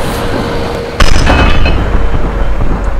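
A truck tyre bursts with a loud bang.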